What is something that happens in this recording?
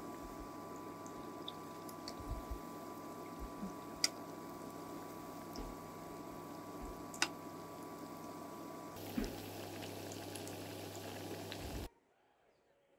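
Hot oil sizzles and crackles steadily in a pot.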